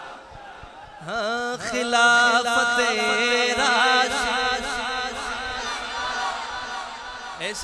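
A man chants loudly and melodiously through a loudspeaker.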